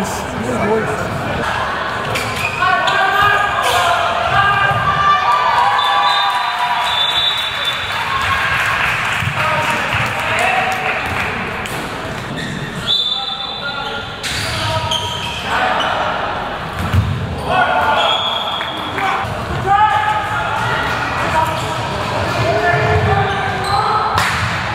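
A handball thuds on the floor.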